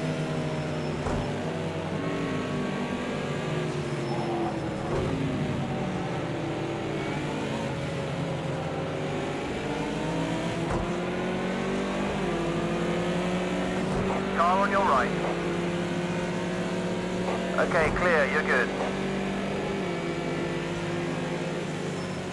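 A racing car engine roars steadily, its pitch rising and falling with gear changes.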